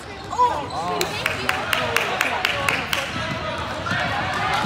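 A basketball bounces rapidly on a hard floor.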